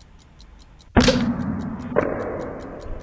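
A film canister rocket pops as its lid blows off.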